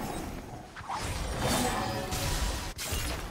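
A magic spell strikes with a loud whooshing blast.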